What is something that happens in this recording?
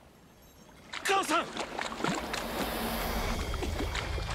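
A young man cries out in anguish.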